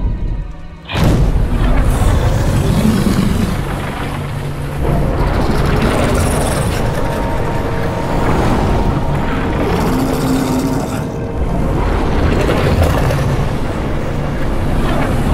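A huge creature roars and growls loudly.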